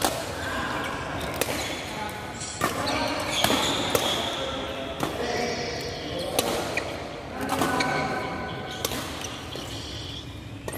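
Young people talk and call out across the hall.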